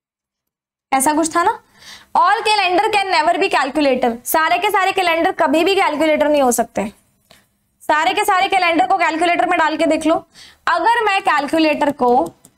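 A young woman speaks clearly into a close microphone, explaining.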